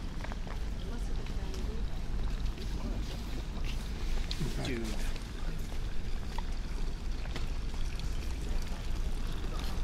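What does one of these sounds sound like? Footsteps walk across stone paving.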